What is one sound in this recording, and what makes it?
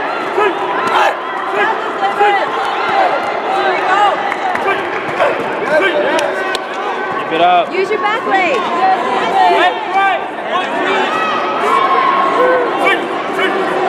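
Kicks thud sharply against padded body protectors.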